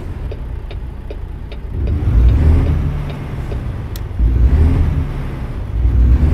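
A truck engine rumbles low, rising and falling in surges.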